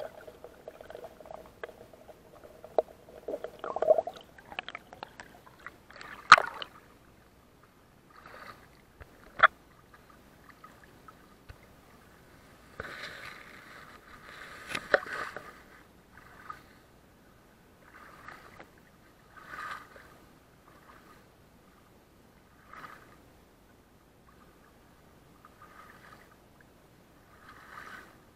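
Water splashes and laps right against the microphone.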